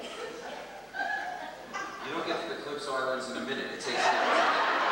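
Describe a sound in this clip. A small group of young performers sings together in a large echoing hall.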